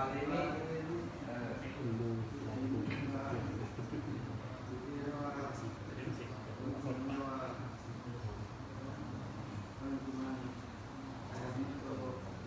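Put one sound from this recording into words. A man leads the chanting through a microphone and loudspeaker.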